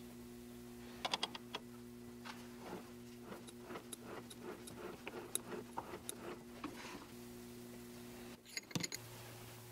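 Small metal parts clink as they are handled.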